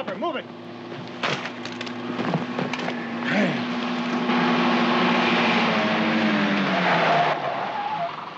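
A vehicle engine roars as it drives fast over sand.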